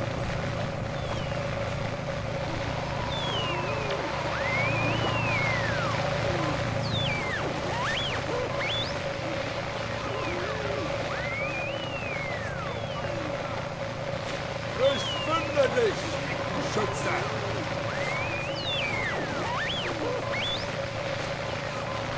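Grass rustles softly as someone crawls through it.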